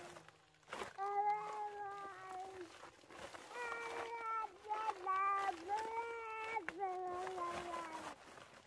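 A baby cries nearby.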